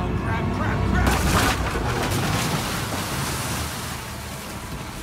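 Water crashes and sprays loudly in a rushing wave.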